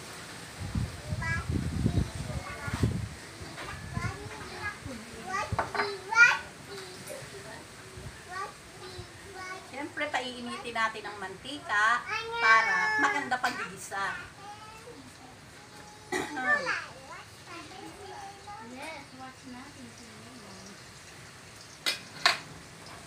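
A middle-aged woman talks with animation, close by.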